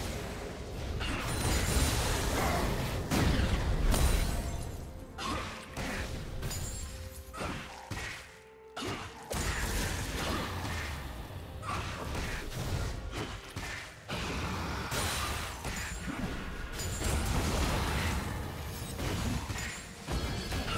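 Video game spells blast and crackle in a fight.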